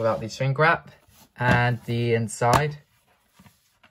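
A plastic case clicks open.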